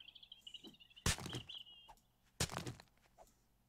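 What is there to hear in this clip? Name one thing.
A tool strikes rock with sharp knocks.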